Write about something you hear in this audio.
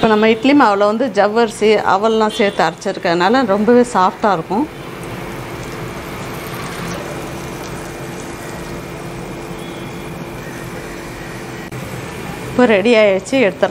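Batter sizzles softly in hot oil.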